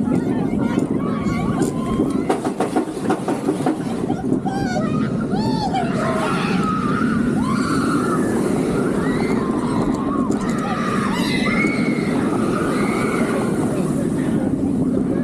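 Wind rushes hard past an open seat.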